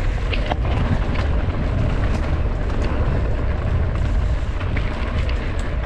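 Footsteps crunch steadily on a dry dirt path.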